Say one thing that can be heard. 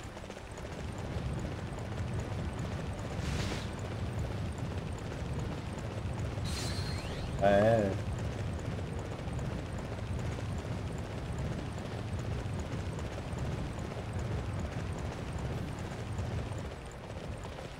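Hooves of a galloping horse thud in a steady rhythm.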